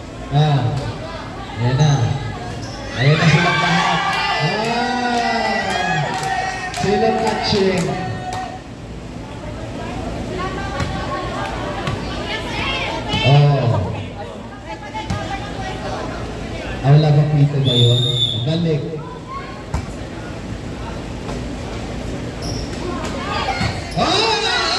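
Young girls shout and call out to each other loudly in a large echoing hall.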